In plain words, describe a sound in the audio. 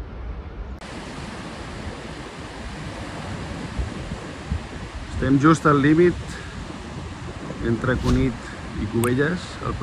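Sea waves break and wash onto rocks.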